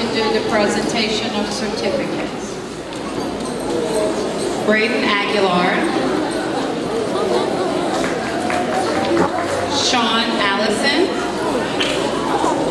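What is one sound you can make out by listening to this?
A woman speaks into a microphone over a loudspeaker in a large hall.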